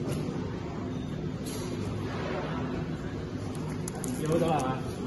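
A packaging machine hums and rattles steadily.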